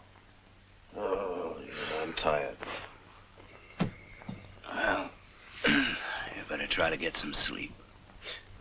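An elderly man speaks in a low, gravelly voice.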